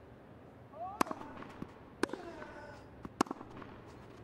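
A tennis ball is struck with sharp pops.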